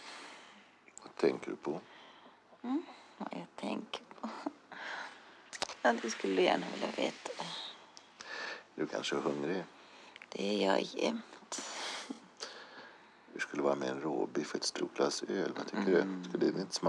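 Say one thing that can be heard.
A woman speaks softly and intimately, close by.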